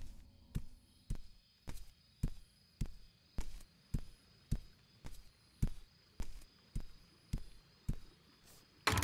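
Footsteps thud on wooden boards at a steady walking pace.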